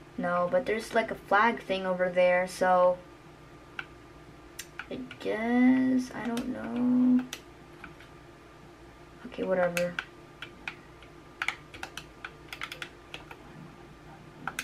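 Buttons on a game controller click softly.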